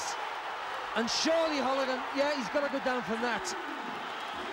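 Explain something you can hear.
A man counts out loud over a boxer who is down.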